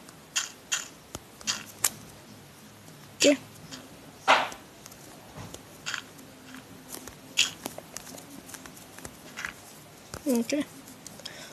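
Blocks crunch with short taps as they are dug out one after another.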